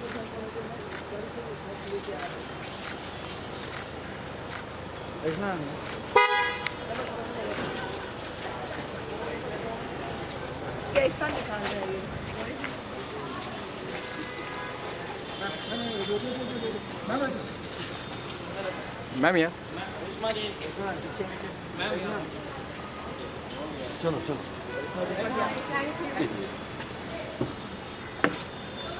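Several men talk and call out nearby.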